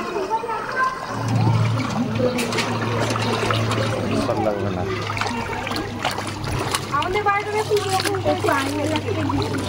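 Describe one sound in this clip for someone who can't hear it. Water splashes as people wade through it.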